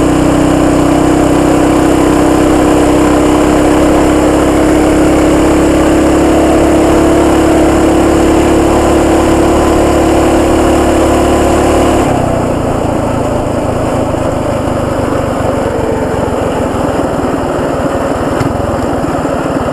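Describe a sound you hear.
A small motor bike engine hums steadily at high revs, then drops to a lower rumble.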